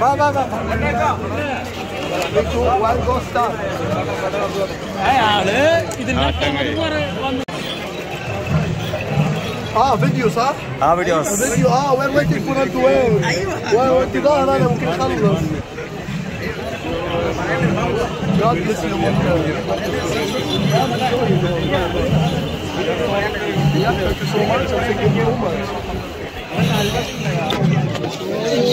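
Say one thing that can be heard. A crowd of men chatters all around outdoors.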